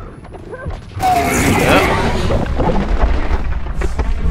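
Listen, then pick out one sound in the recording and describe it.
A loud explosion bursts and rumbles.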